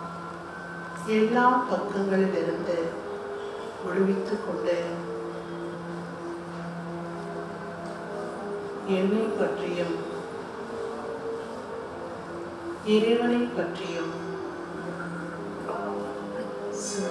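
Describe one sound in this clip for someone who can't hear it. A middle-aged woman speaks steadily into a microphone, heard through loudspeakers in a hall.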